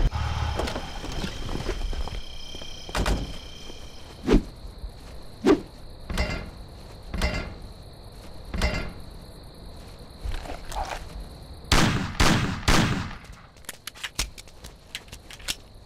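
Footsteps thud on the ground.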